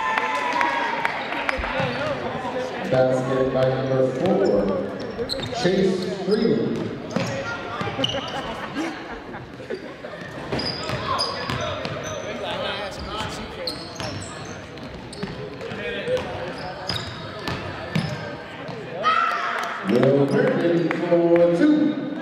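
Sneakers squeak sharply on a hard floor in an echoing gym.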